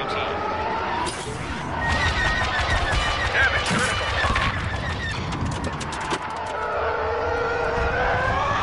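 A fighter craft's engine roars and howls steadily.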